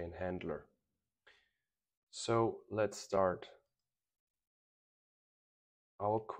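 A man speaks calmly and close into a microphone, in short phrases with pauses.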